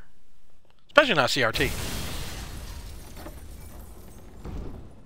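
Glass shatters loudly, with the shards ringing and fading.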